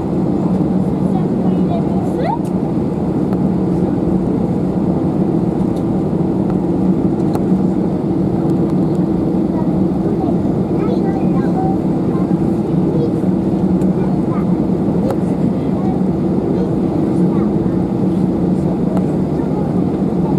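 Jet engines hum steadily inside an airliner cabin as it taxis.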